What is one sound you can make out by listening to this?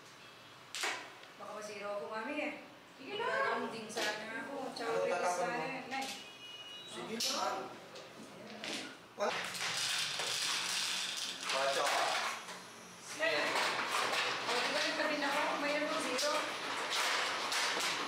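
Elderly women chat calmly nearby.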